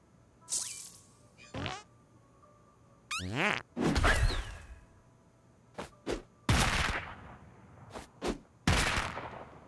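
Short electronic chimes and whooshes sound in quick bursts.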